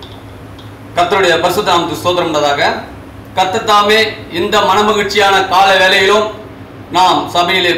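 An elderly man speaks with animation through a headset microphone.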